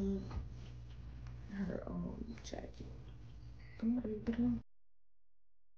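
A woman speaks close by in a casual voice.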